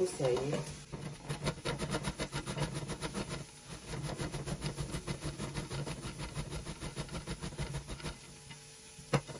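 A vegetable rasps quickly against a metal grater.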